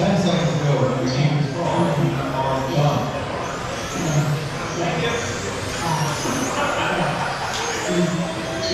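A man talks with animation in a large echoing hall.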